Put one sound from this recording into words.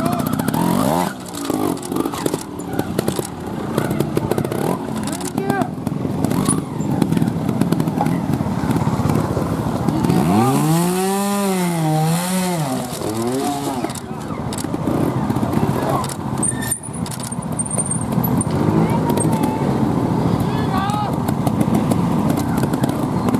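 Motorcycle tyres bump and scrape over rocks.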